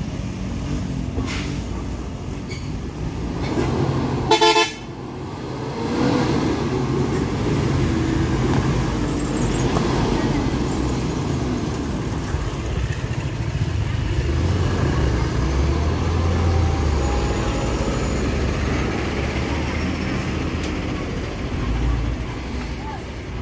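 A heavy truck engine rumbles close by.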